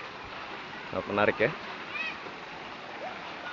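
Children shout and squeal nearby outdoors.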